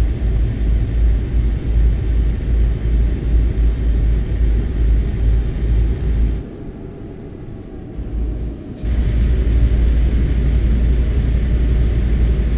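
A heavy truck engine rumbles low and steady, briefly easing off before picking up again.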